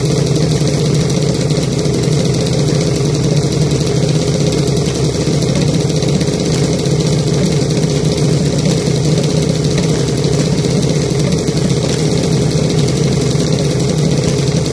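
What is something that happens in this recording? A dragster engine idles loudly with a rough, steady roar.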